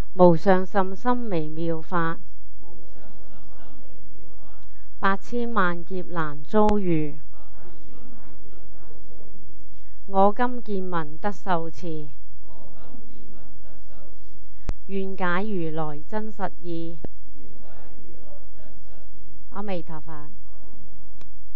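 An elderly woman chants slowly in long drawn-out phrases through a microphone.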